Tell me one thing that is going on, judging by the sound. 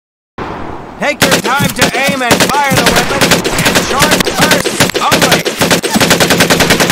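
A submachine gun fires long rapid bursts.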